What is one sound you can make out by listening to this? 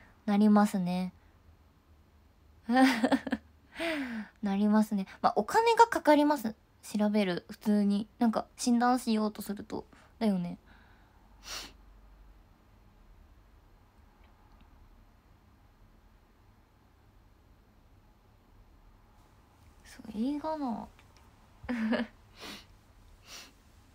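A young woman speaks animatedly and close up into a microphone.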